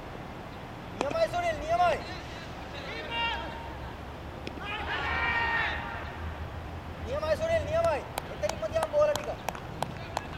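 Men shout loudly outdoors.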